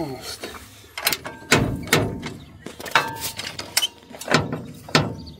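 Metal tools clank and knock against an old car's body.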